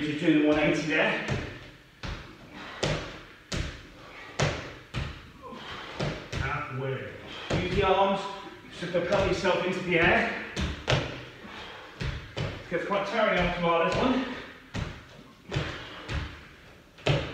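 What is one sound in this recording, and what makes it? Sneakers thud and squeak on a rubber floor.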